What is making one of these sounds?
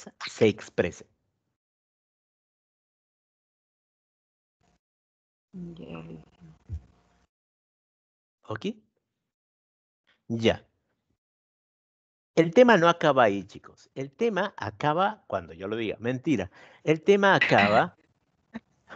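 A man speaks over an online call, in short bursts with pauses.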